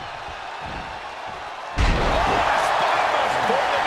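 A body slams hard onto a wrestling ring mat.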